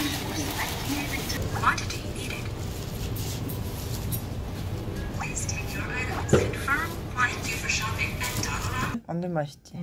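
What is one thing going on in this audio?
A self-checkout machine beeps.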